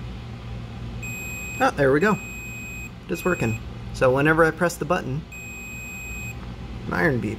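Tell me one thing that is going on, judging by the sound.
A multimeter beeps with a steady high tone.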